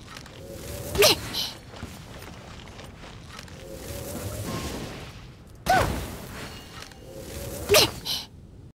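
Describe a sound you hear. A bow twangs sharply as an arrow is loosed.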